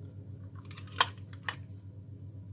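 A metal spoon clinks against a dish.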